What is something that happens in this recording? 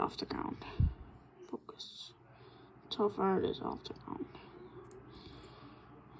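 Small plastic parts click softly between fingers.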